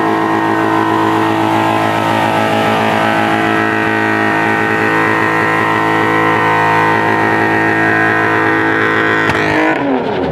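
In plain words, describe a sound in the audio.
A straight-six car engine is held at high revs.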